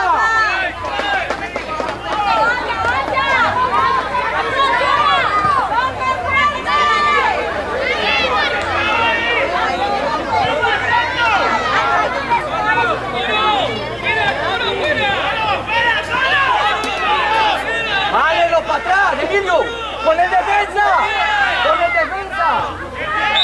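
Children shout and call out across an outdoor field.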